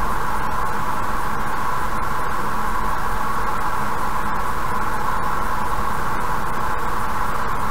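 Road noise hums steadily inside a car driving fast on a highway.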